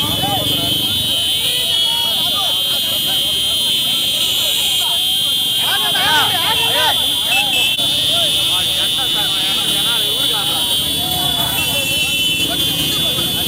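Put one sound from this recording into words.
Motorcycle engines idle and rev nearby.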